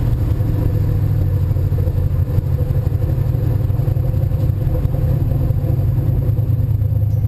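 An old car's engine roars steadily from inside the cabin at speed.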